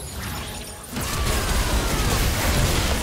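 Game spell effects whoosh and burst loudly during a fight.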